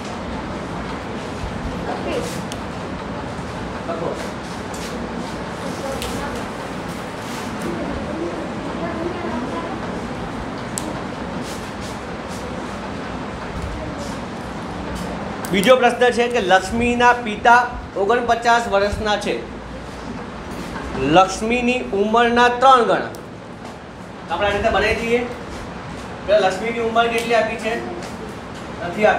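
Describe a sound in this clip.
A man speaks clearly and explains.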